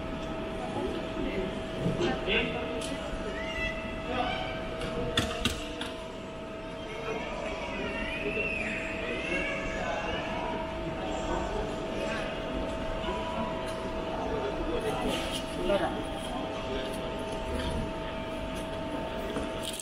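A steady hum and murmur fill a large echoing hall.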